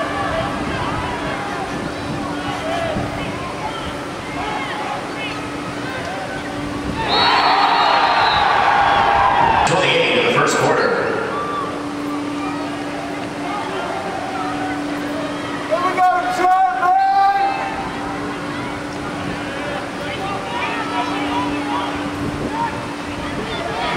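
A crowd of spectators chatters and calls out in an open-air stadium.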